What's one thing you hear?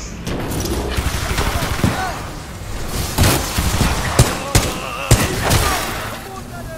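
Gunfire cracks in sharp, loud bursts.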